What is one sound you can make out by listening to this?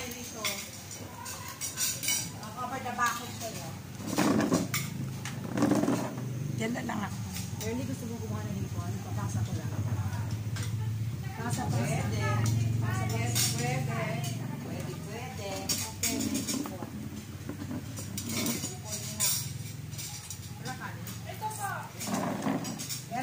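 Cutlery and plates clink on a table.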